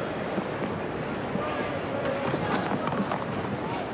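A cricket bat knocks a ball.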